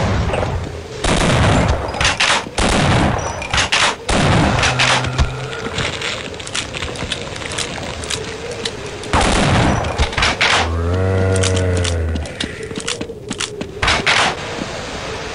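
Shotgun blasts boom loudly several times.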